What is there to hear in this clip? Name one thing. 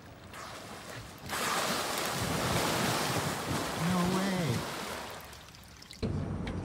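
Dolphins splash through calm water.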